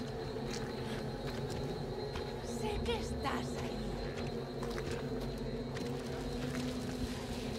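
Footsteps crunch slowly on dirt and gravel.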